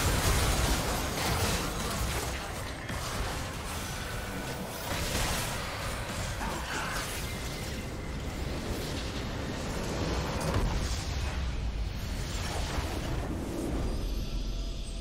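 Game spells and weapons clash in a busy, noisy battle.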